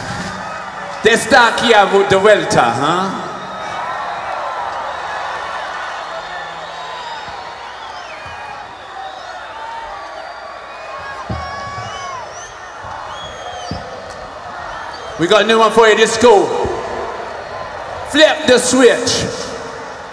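A man shouts loudly into a microphone over a loudspeaker in a large echoing arena.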